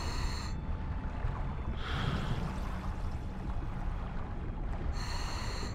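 A swimmer moves through water, heard as a low, muffled underwater rumble.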